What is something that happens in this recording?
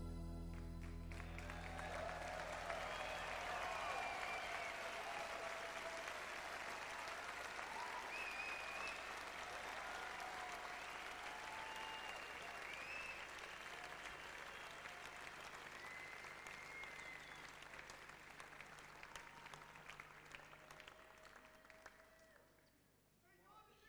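A large crowd applauds and cheers in a big hall, slowly dying down.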